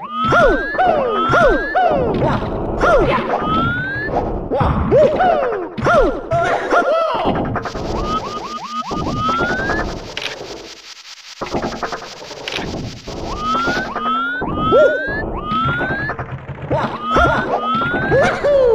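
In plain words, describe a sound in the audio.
Cartoonish jump sounds chirp again and again as a game character leaps.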